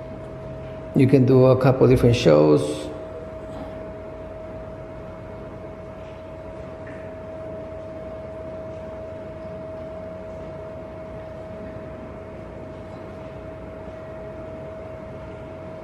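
A light fixture's fan hums steadily with a thin whine.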